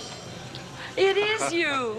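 A woman calls out excitedly and with animation, close by.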